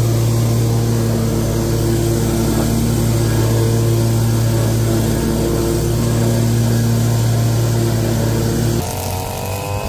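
A mower engine runs with a steady, loud drone.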